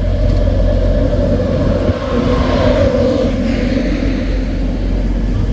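A train's horn sounds as it approaches.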